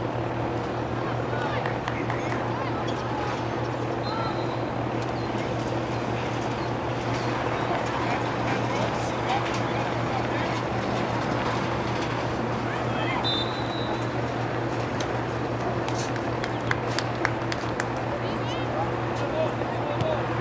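Young women players call out to each other from across an open field outdoors.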